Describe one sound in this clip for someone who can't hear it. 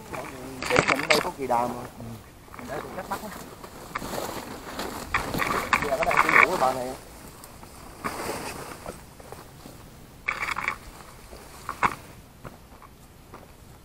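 Footsteps crunch through low brush outdoors.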